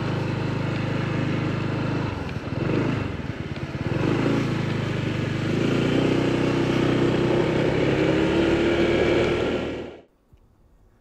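Tyres crunch over gravel.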